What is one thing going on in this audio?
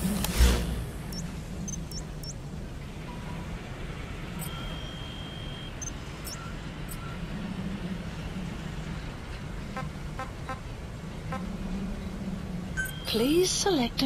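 Menu beeps and clicks chime one after another.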